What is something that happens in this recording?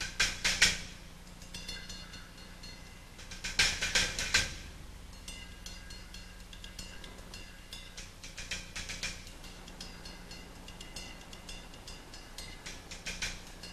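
Cymbals crash loudly and ring out.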